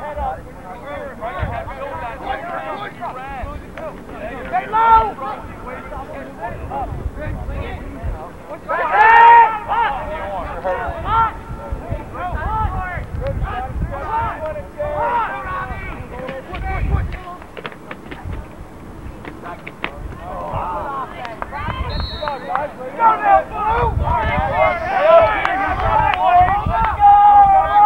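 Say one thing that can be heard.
Young men on a team shout and cheer outdoors.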